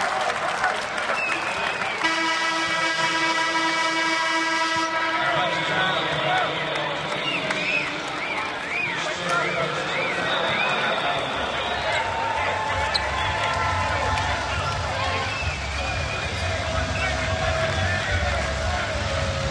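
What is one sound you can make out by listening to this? A large indoor crowd murmurs and cheers in an echoing arena.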